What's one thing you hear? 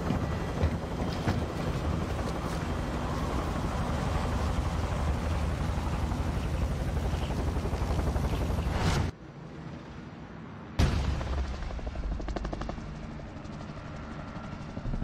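Helicopter rotors roar loudly and steadily.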